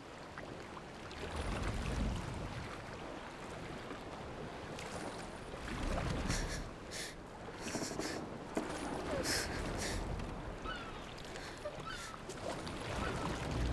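Oars splash and creak as a rowing boat moves through water.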